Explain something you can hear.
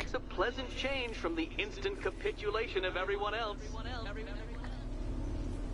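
A man speaks through a loudspeaker in a sly, mocking tone.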